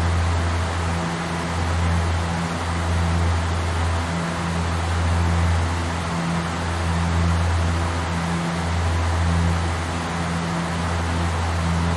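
Air rushes steadily past the cockpit.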